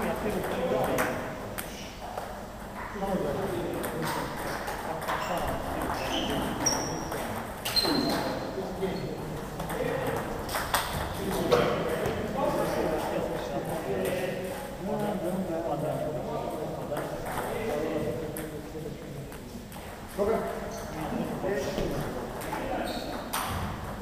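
Ping-pong balls click sharply on paddles and tables.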